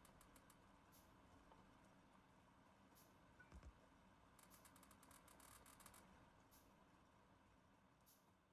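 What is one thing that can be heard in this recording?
Machines hum softly and steadily.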